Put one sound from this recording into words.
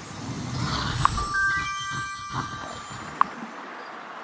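A game plays short bright chimes as menus open.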